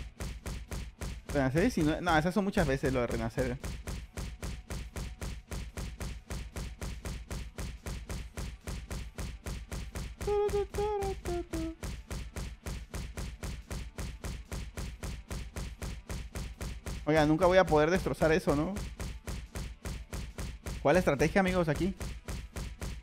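Fast, steady rhythmic thumps of punches landing keep going.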